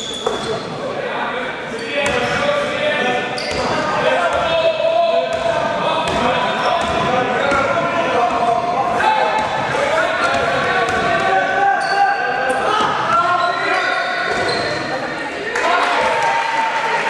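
Young players shout and call out across a large echoing hall.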